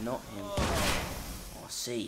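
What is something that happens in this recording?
Gunshots ring out in short bursts.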